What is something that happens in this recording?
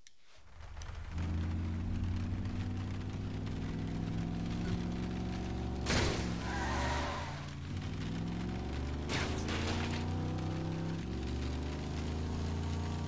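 A car engine revs and roars steadily as the car drives.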